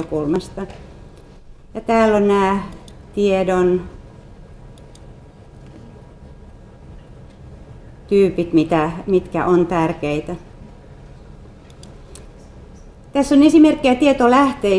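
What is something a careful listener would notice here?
A woman speaks calmly through a microphone, with pauses.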